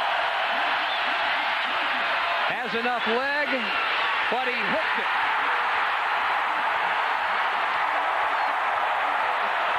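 A large crowd roars and cheers loudly in a stadium.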